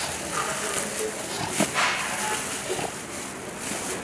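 Pieces of fruit are scraped across a wooden board.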